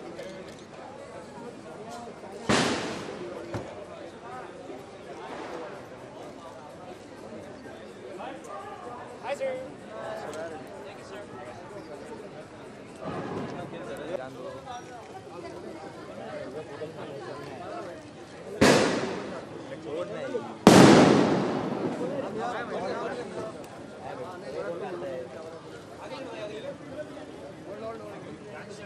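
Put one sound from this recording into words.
A crowd of men chatter and call out nearby outdoors.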